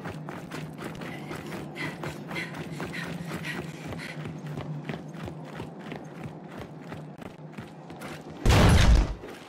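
Footsteps crunch steadily over rubble.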